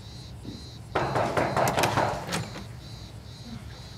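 A woman knocks on a wooden door.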